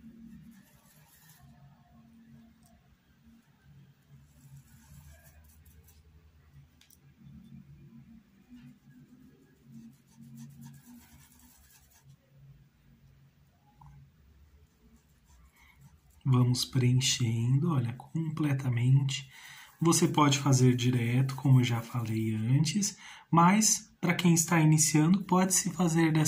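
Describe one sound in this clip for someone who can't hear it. A paintbrush brushes softly across fabric.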